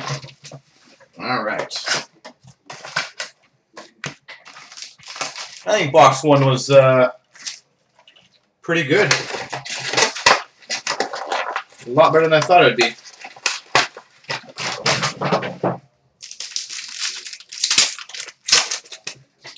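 Cards and wrappers rustle and flick in a man's hands.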